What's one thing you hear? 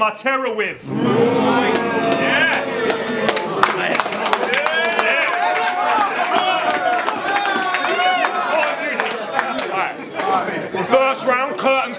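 A crowd cheers and shouts in a room.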